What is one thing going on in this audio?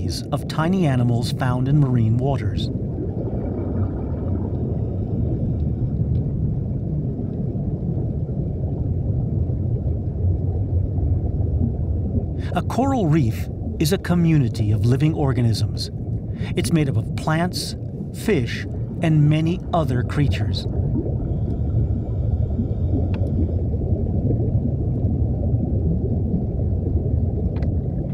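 Water rumbles low and steady all around.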